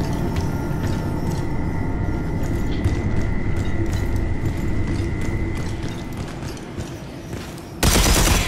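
A huge machine hums with a deep, steady rumble.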